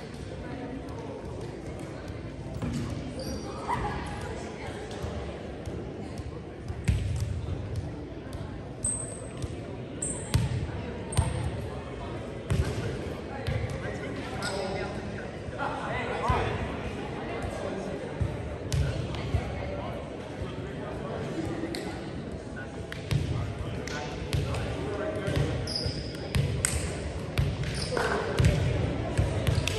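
A crowd of young spectators chatters and cheers in the background.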